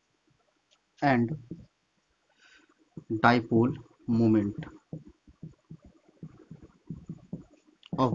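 A young man speaks calmly and close by, explaining.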